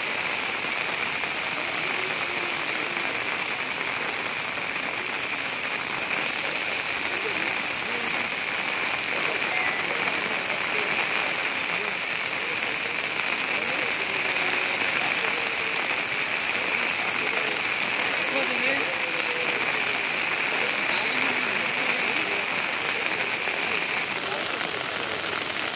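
Fast floodwater rushes and roars steadily outdoors.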